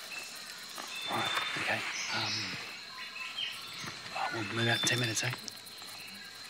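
A man speaks in a low, quiet voice close by.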